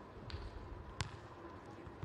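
A hand slaps a volleyball on the serve.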